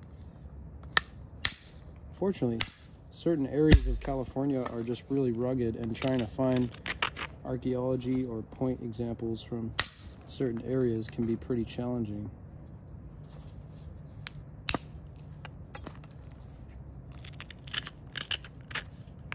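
Stone flakes snap off with sharp clicks as an antler tool presses against the edge.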